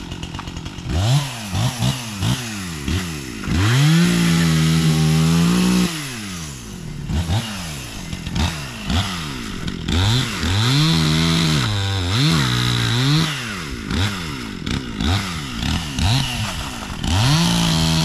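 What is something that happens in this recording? A chainsaw engine sputters briefly each time its starter cord is pulled.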